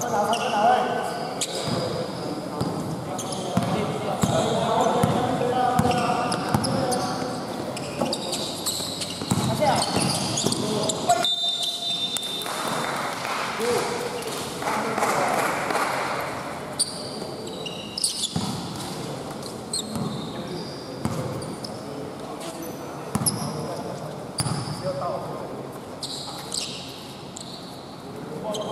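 Young men shout and call out during play, echoing in a large hall.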